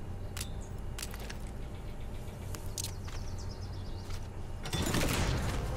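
Footsteps crunch on dry gravel.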